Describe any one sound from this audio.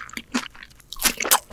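A woman bites into crispy ramen pizza crust with a loud crunch close to a microphone.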